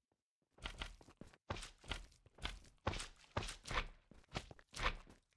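Footsteps tread on stone at a steady pace.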